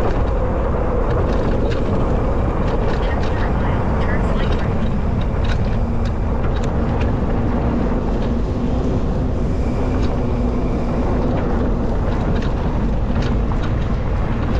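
Tyres crunch and rattle over a dirt road with small stones.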